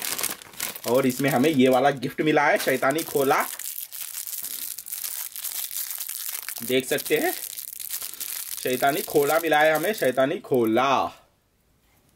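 A plastic toy wrapper crackles under the fingers.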